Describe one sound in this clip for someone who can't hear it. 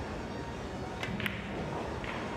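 A cue strikes a pool ball with a sharp tap.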